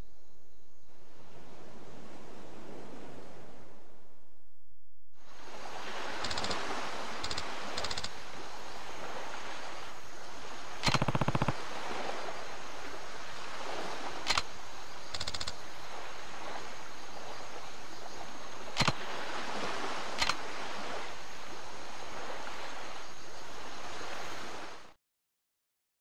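Waves wash softly onto a shore.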